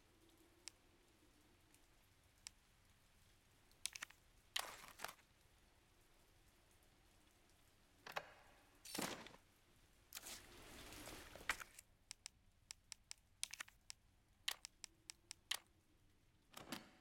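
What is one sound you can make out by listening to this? Short menu clicks tick sharply, one at a time.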